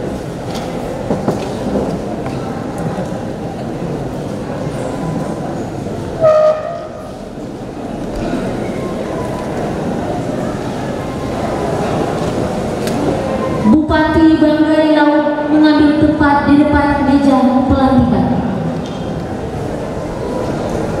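A man speaks through a loudspeaker in an echoing hall.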